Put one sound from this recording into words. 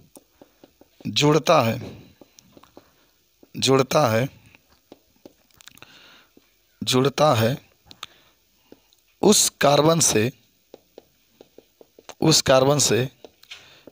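A man speaks slowly and clearly into a close microphone, in short bursts with pauses.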